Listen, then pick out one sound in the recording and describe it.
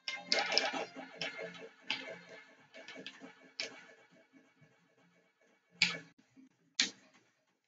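Bouncy electronic game music plays.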